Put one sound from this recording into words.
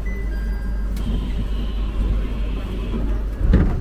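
Train doors slide open with a hiss.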